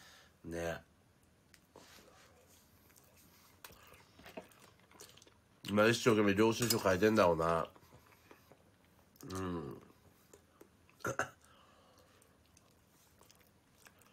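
A young man chews a banana.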